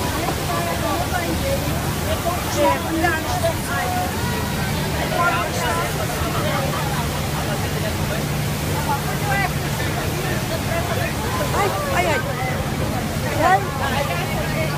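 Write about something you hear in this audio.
A crowd of adult passengers chatters close by.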